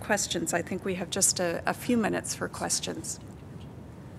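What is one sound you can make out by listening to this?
A middle-aged woman speaks calmly through a microphone.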